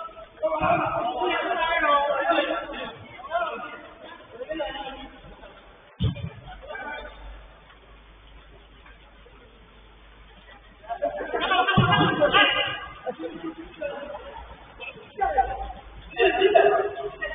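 Men shout to each other from a distance, outdoors.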